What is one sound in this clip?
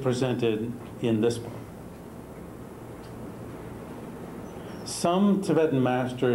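A middle-aged man speaks calmly, as if lecturing.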